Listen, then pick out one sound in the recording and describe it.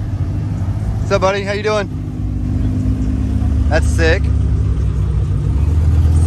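A sports car engine rumbles deeply as the car drives slowly past close by.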